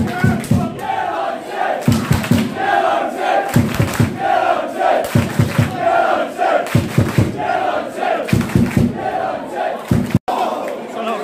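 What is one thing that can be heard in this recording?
A crowd of young men chants loudly in rhythm nearby.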